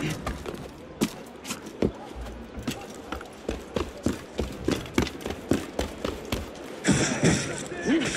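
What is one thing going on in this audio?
Boots thud on roof tiles.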